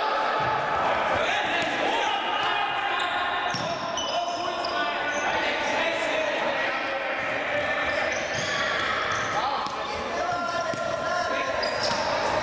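Young men shout to each other across the echoing hall.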